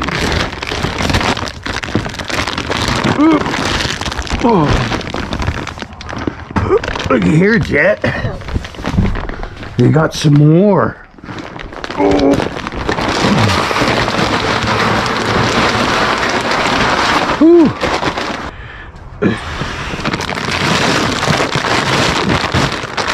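A plastic feed bag rustles and crinkles.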